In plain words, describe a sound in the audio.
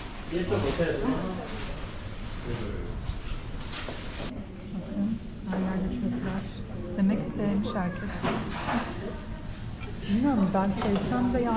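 Many people chatter in a busy, echoing room.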